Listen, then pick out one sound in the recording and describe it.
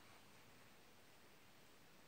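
A ferret's paws patter softly on carpet.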